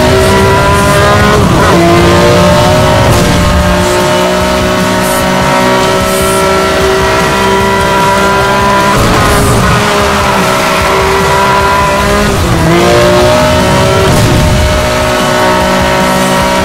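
A sports car engine roars at high revs, with sudden drops in pitch as gears shift.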